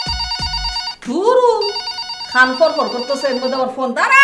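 A woman speaks with strong expression close by.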